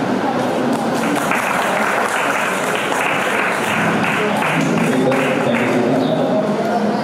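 A crowd applauds.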